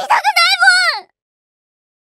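A young girl exclaims loudly in a high voice.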